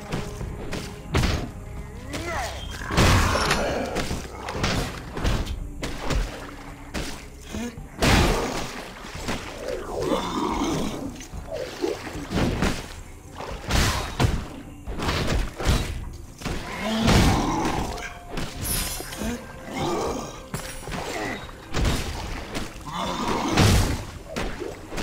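Blades and blunt weapons strike repeatedly in a fight.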